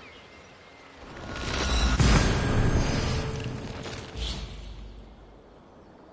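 A deep rushing whoosh swells up and fades away.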